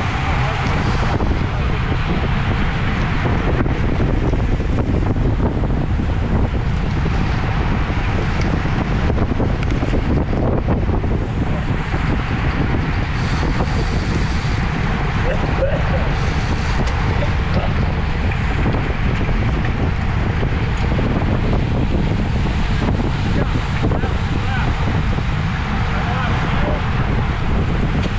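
Wind buffets loudly and steadily past a moving bicycle.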